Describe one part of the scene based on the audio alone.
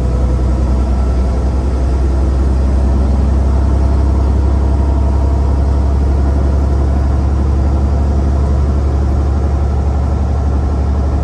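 Tyres roll and hum on a highway.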